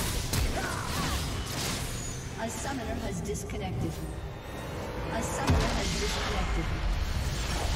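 Magic blasts and sword hits crackle and boom in a fast fight.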